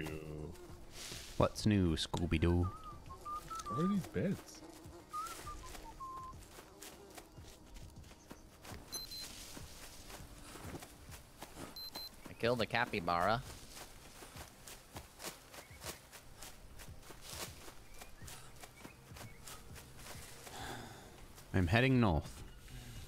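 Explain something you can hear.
Footsteps rustle through dense undergrowth.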